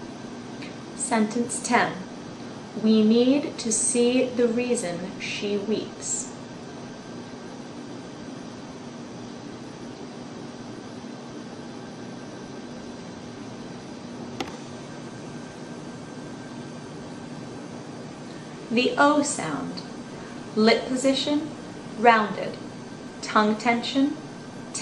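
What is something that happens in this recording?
A young woman speaks calmly and close by, with long pauses.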